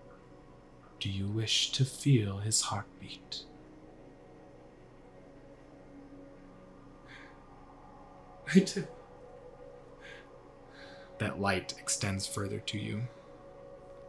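A man speaks with animation, close by, in short bursts with pauses.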